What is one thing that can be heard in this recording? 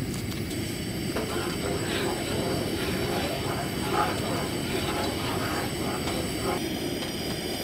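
A spoon scrapes and clinks in a pan.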